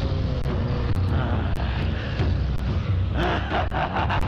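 A man laughs loudly and menacingly.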